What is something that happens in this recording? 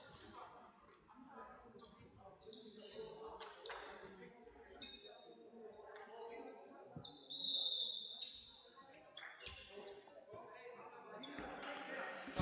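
Sports shoes squeak sharply on a hall floor.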